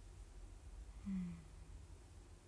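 A young woman makes a brief, soft hum up close.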